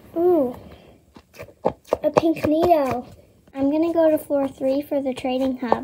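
A rubber ball squeaks as a hand squeezes it.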